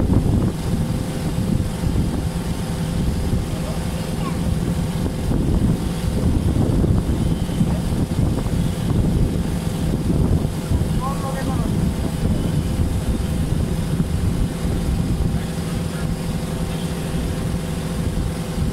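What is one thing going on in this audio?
Water splashes and rushes along the hull of a boat.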